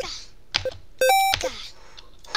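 A bright electronic chime sounds once as a game score passes a milestone.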